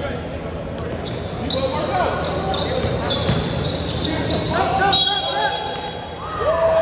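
Sneakers squeak sharply on the court.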